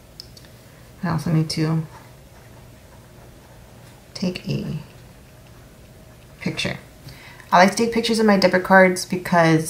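A young woman speaks calmly and softly close to a microphone, in short bursts.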